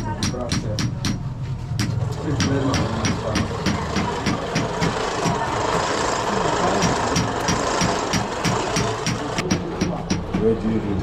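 A hand-cranked blower whirs with a steady, rhythmic clicking.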